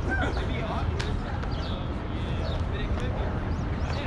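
A skateboard lands hard and clatters on pavement.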